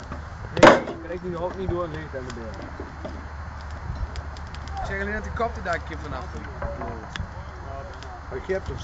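Men talk outdoors at a distance.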